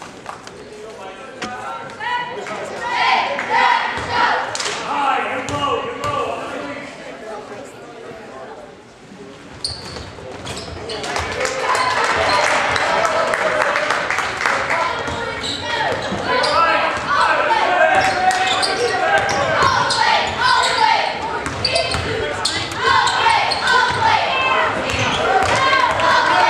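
A crowd cheers and chatters loudly in a large echoing gym.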